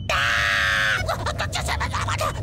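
A cartoon creature spins with a fast whooshing swirl.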